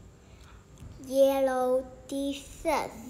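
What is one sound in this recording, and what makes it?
A young girl speaks close to the microphone.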